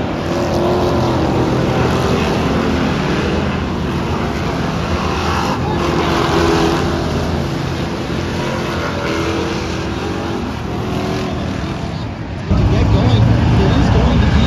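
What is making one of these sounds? Race car engines roar loudly.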